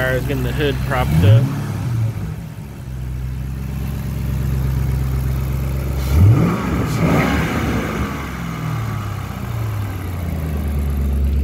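A car engine revs up briefly and settles back down.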